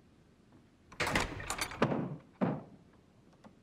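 A heavy wooden door creaks open and knocks.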